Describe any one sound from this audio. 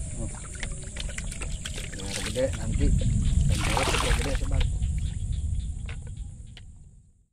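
Water trickles and splashes in a shallow stream.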